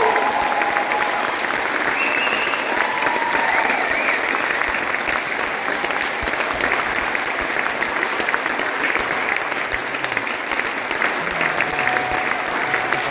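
Saxophones play a melody.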